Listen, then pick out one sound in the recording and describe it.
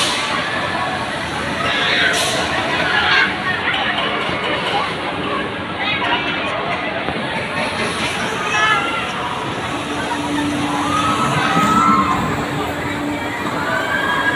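A fairground ride whirs and rumbles steadily as it spins.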